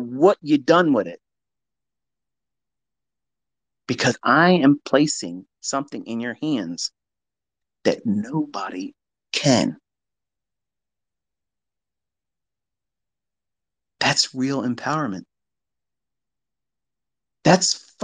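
A man speaks calmly and close to a microphone, with long pauses.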